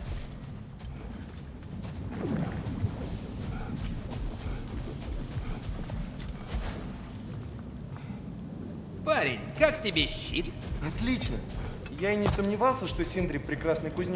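Heavy footsteps crunch over snow and rock.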